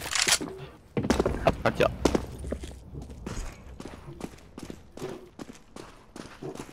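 Rifle shots crack in short, rapid bursts.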